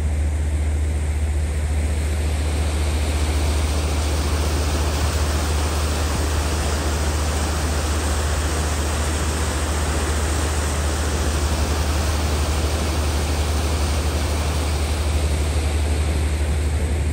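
Water churns and splashes in a boat's wake.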